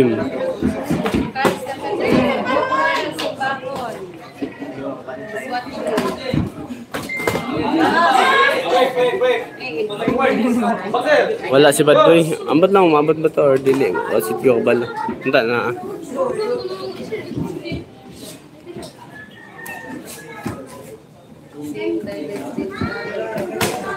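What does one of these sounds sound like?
Boxing gloves thud on headgear and body.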